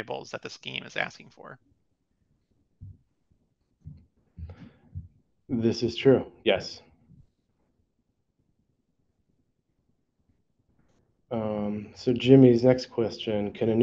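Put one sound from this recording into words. A man speaks calmly through an online call microphone, pausing between phrases.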